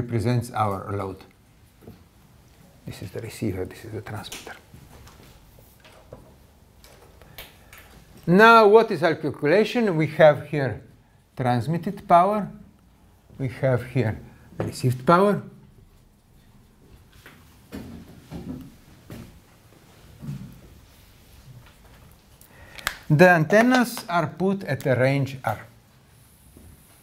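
An elderly man talks calmly, pausing between phrases.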